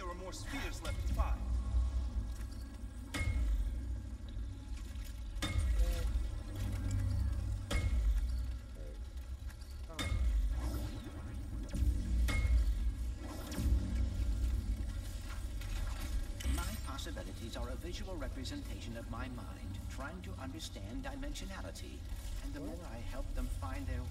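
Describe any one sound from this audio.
A man talks quietly into a headset microphone.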